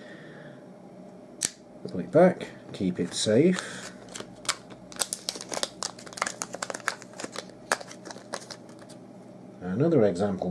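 Plastic packaging crinkles and clicks in hands.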